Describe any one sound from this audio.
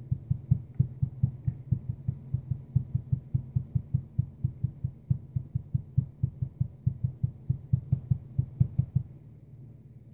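Fingers tap rapidly on a touchscreen with quick, soft knocks.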